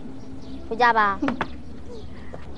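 A young boy speaks up close.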